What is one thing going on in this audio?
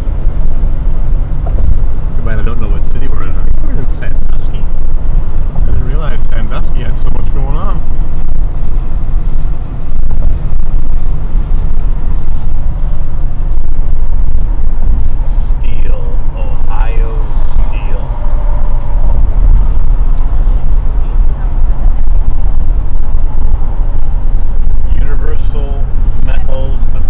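A car drives fast along a highway with a steady low rumble of road and wind noise.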